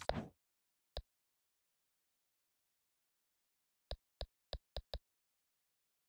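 Short soft clicks tick as a game menu is browsed.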